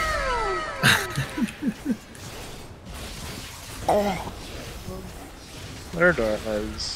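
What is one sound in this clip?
Magic spells burst and whoosh in quick succession.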